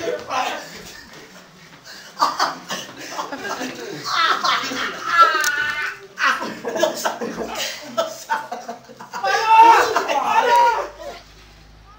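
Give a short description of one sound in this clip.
Young men shout and laugh loudly close by.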